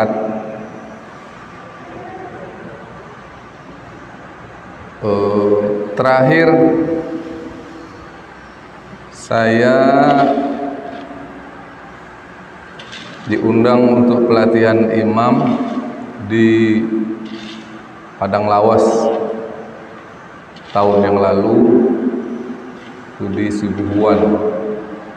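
A middle-aged man preaches with emphasis into a microphone, in bursts with pauses, in a reverberant room.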